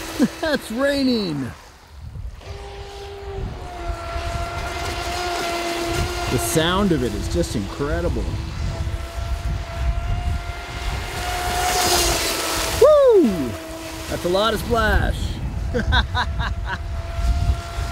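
Water sprays and hisses behind a racing boat.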